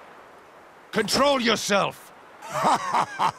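A young man shouts angrily.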